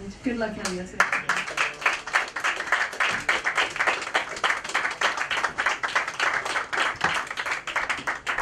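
An audience applauds with steady, fast clapping.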